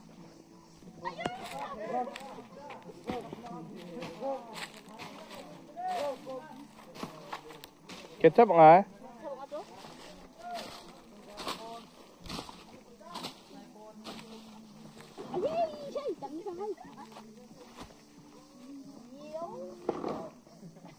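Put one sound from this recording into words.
Women talk with animation outdoors.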